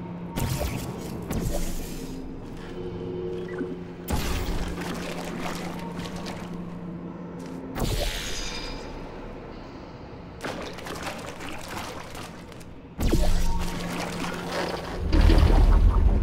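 Thick liquid splatters and splashes in wet bursts.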